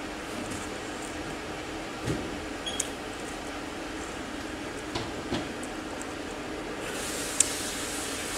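Crisp food crunches between teeth.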